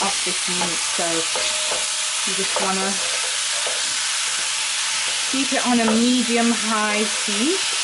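A wooden spoon scrapes and stirs food in a metal pot.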